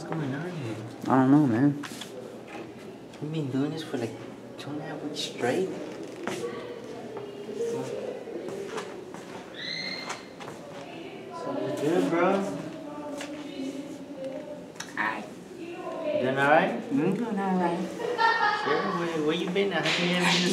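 A young man talks and laughs close by.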